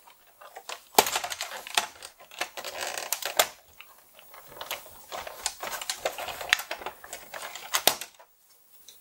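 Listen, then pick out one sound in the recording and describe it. Plastic casing clicks and creaks as it is pried open.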